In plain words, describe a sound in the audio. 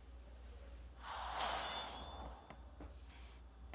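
A triumphant victory fanfare swells up.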